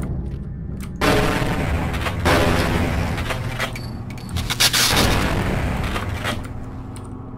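Sparks crackle and hiss in a loud burst.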